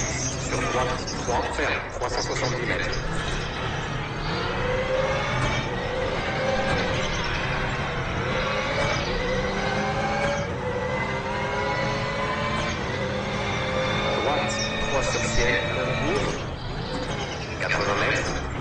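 A man talks into a microphone now and then.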